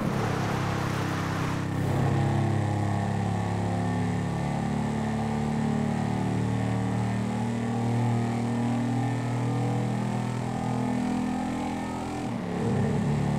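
A motorcycle engine drones steadily, echoing in a tunnel.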